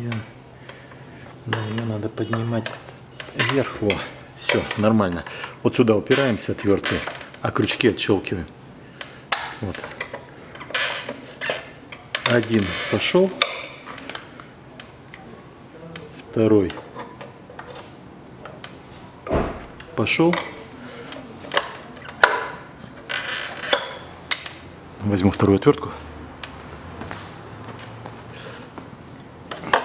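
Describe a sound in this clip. Hard plastic parts click and knock as they are handled.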